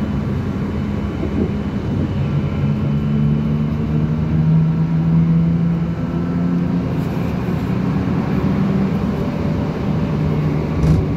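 An engine hums steadily from inside a moving car.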